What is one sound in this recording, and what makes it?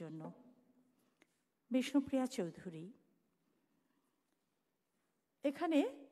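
A woman recites expressively into a microphone, with pauses between phrases.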